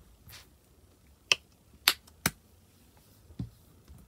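A plastic cap snaps shut.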